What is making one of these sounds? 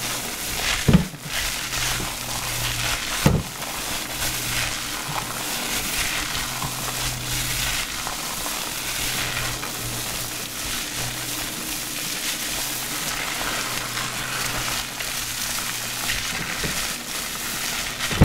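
Hands rub and squish lather into wet hair.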